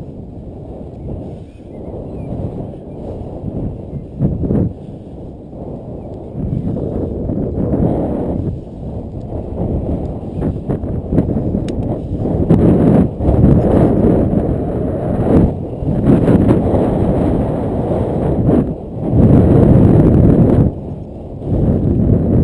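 Wind buffets loudly across a microphone outdoors, rising and falling in gusts.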